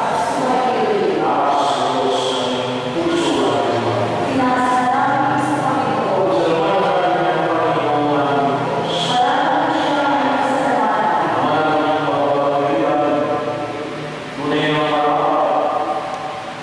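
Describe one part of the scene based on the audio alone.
A man chants in a sustained, sung voice through a microphone in an echoing hall.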